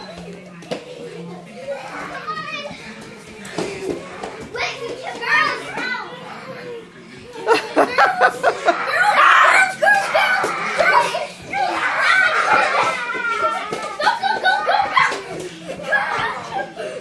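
Young children shout and squeal excitedly close by in a room.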